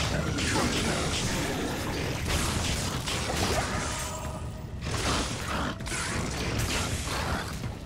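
Magic spells burst with bright blasts.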